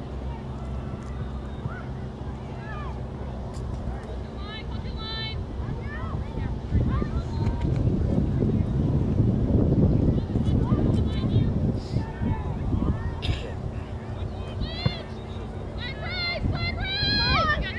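Young players call out faintly across an open field in the distance.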